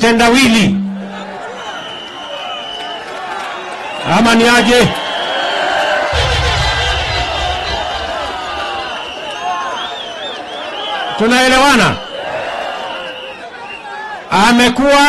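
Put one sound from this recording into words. A crowd cheers and murmurs.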